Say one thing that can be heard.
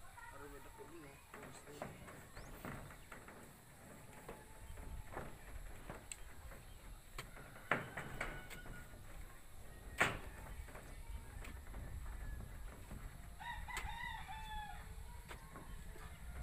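A brush scrapes and taps on a metal roof.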